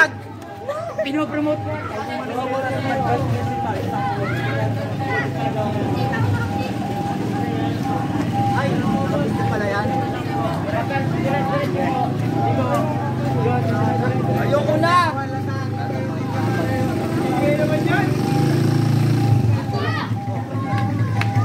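A crowd of young people chatter and call out nearby, outdoors.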